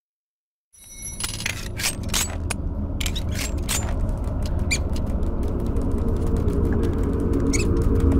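Footsteps tap on a stone floor in an echoing room.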